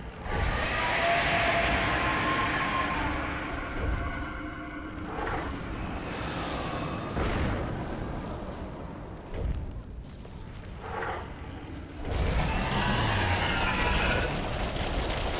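Fiery magic blasts and explosions burst again and again.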